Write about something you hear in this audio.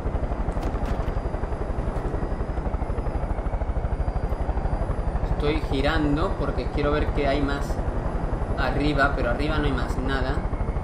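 A helicopter rotor thumps in a steady, fast rhythm.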